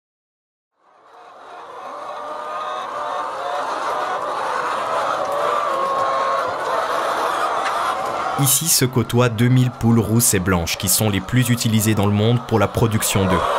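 Many hens cluck and chatter together.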